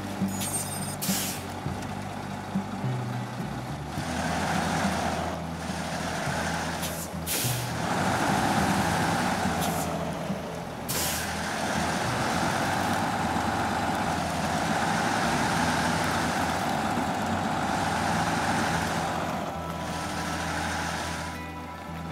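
Tyres crunch over snow and gravel.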